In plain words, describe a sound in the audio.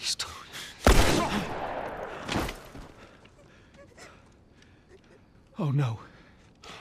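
A single gunshot cracks loudly.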